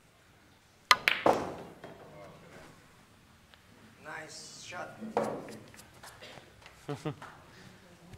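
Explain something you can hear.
Pool balls clack together and knock against the cushions.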